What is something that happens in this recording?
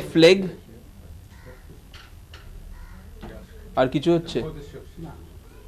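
An elderly man speaks slowly in short bursts, close by.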